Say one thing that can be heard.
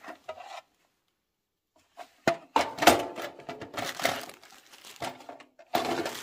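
Metal parts clink and rattle in a tin box.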